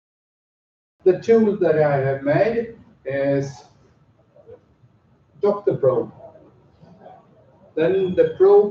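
A man speaks calmly, presenting to a room with a slight echo.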